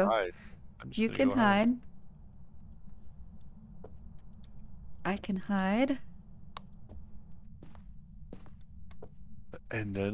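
A young woman speaks with animation through a close microphone.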